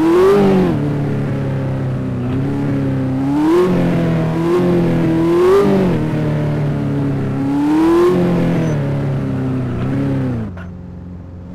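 A car engine revs up and down as the car drives.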